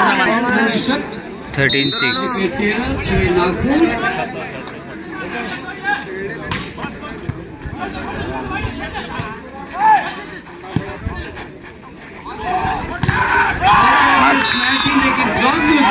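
Young men on a court call out to each other.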